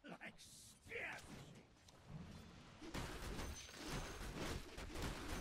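Game spell effects and weapon clashes ring out in a fight.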